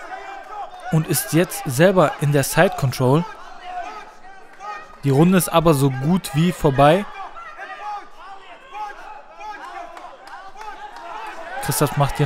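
A man close by shouts loudly in bursts.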